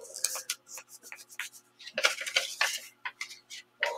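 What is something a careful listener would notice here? Fabric rustles as hands smooth it.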